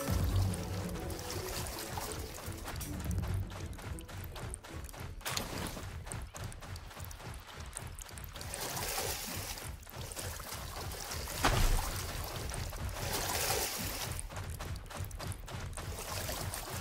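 Water splashes and rushes steadily.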